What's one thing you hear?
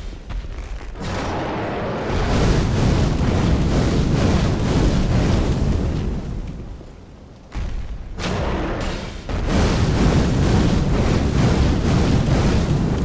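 Flames roar loudly in bursts.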